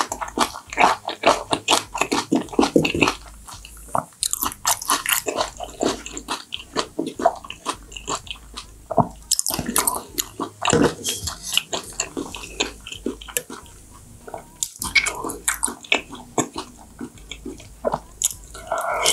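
A young woman chews food wetly and smacks her lips close to a microphone.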